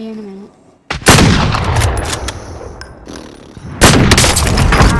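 A sniper rifle fires loud, booming single shots.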